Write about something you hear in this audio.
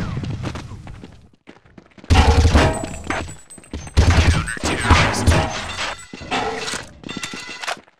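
A rifle fires rapid, loud bursts.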